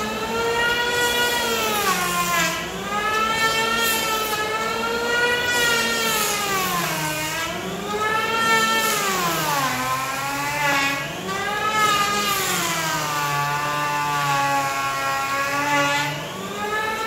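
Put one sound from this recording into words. An electric hand planer whines loudly as it shaves wood, its pitch dipping and rising as it cuts.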